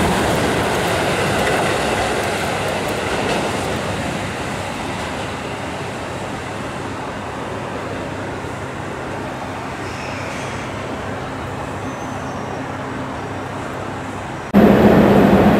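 A train rumbles along the tracks, slowly fading into the distance.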